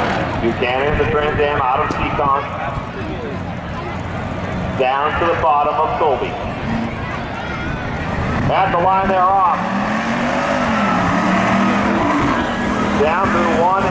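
A large crowd cheers in the distance.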